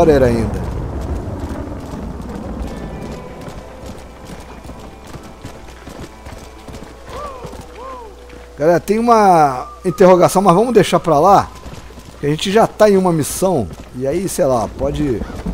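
Horse hooves gallop steadily on a dirt track.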